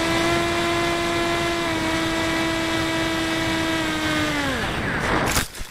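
A model plane's electric motor whines loudly and steadily, then winds down.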